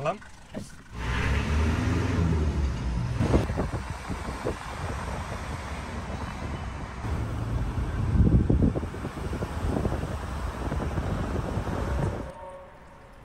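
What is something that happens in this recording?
A car drives along a street, its road noise rumbling steadily inside.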